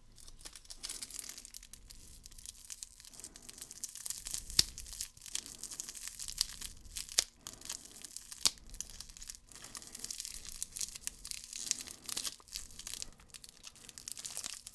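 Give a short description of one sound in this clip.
Plastic wrapper crinkles and rustles close up.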